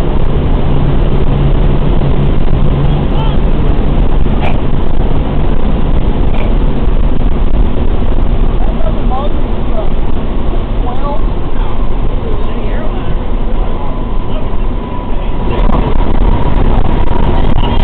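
Radial piston engines of a four-engine bomber roar while taxiing, heard from inside the fuselage.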